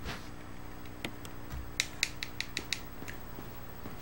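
Short electronic clicks from a video game menu sound in quick succession.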